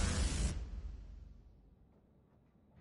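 A bright game chime rings out and slowly fades.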